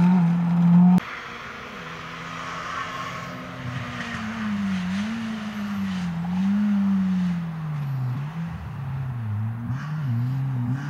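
Another rally car engine revs through gear changes in the distance.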